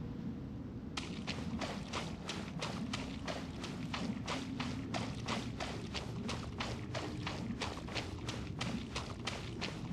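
Quick footsteps run steadily over grass.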